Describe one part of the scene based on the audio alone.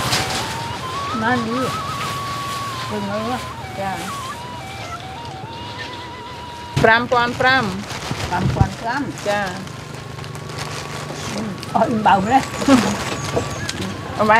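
An elderly woman talks calmly close by.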